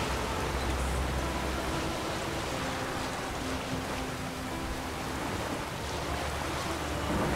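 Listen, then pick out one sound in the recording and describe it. Heavy rain pours down in a strong wind.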